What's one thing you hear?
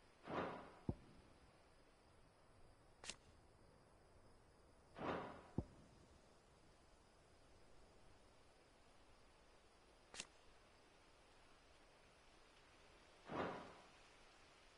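A game menu makes short, soft whooshing sounds.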